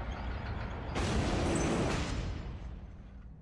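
A heavy metal gate scrapes open.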